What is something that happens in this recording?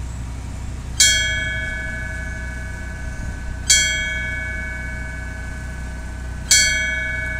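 A bell is struck three times, slowly, each strike ringing out and fading.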